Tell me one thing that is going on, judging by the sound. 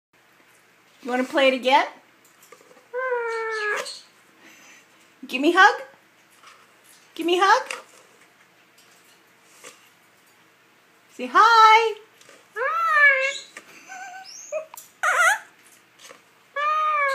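A parrot chirps and squawks in short, rising bursts close by.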